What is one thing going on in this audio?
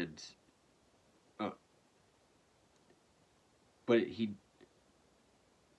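A young man speaks quietly in short bursts close to a microphone.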